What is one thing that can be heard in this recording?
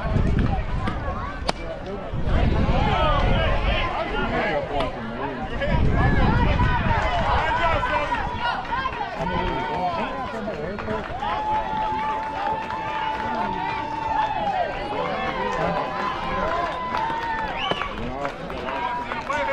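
A softball smacks into a catcher's mitt.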